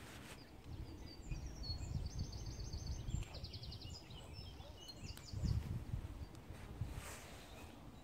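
Wind rumbles faintly outdoors.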